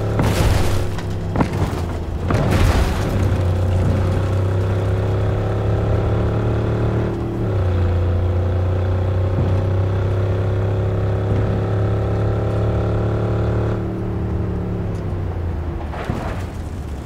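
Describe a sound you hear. A car engine hums steadily and rises and falls in pitch as the car drives.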